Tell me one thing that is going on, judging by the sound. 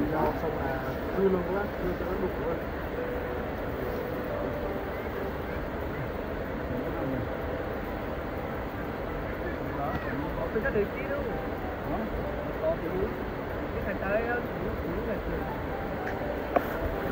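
Two men talk casually outdoors nearby.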